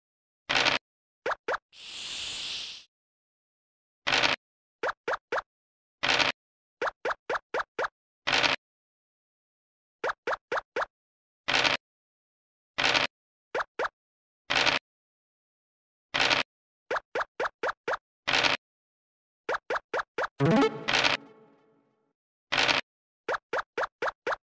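Short game clicks tick in quick runs as pieces hop along the board.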